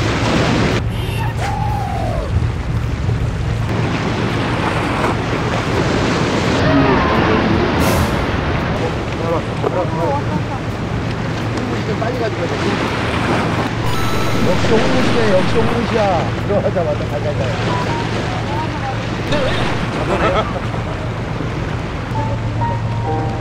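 Waves splash against rocks nearby.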